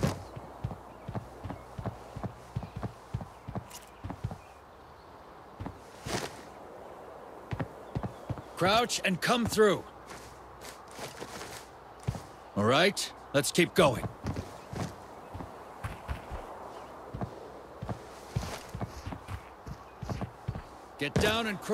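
Footsteps tread on concrete.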